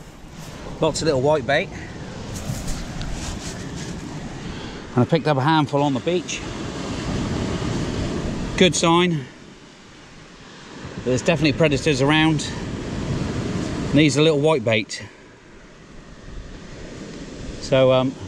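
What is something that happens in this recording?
Waves wash gently onto a pebble shore nearby.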